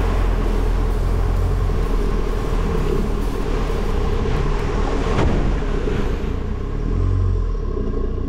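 Tyres splash and squelch through mud.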